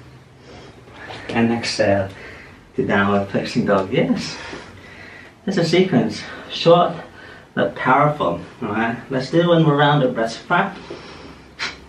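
A man speaks calmly and clearly, giving instructions close to a microphone.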